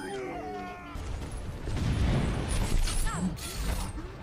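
A heavy gun fires with loud booming blasts.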